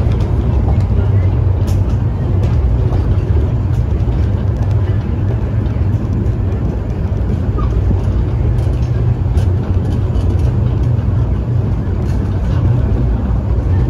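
A steam engine chuffs and hisses out steam.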